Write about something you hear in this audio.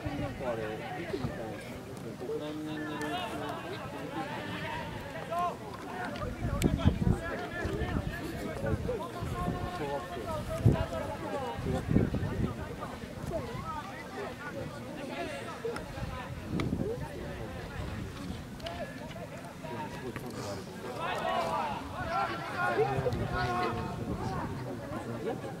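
Young men shout to one another across an open outdoor pitch.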